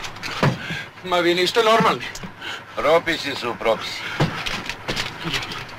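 A man argues loudly nearby.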